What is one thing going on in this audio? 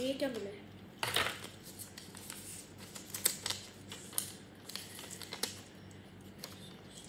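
Paper rustles and crinkles as a leaflet is unfolded.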